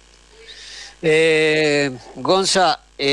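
A man speaks with animation into a microphone, drawing out his words.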